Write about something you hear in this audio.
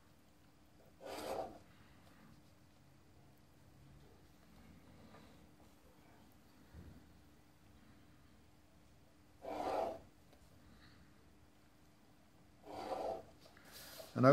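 A pencil scratches along a ruler on paper.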